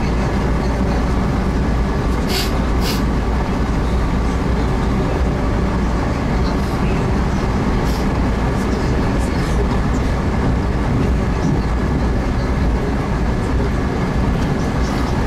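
A train rumbles and rattles steadily along the tracks, heard from inside a carriage.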